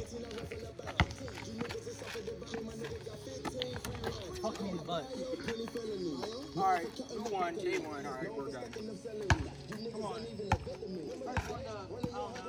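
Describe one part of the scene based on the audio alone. A basketball bounces hard on pavement.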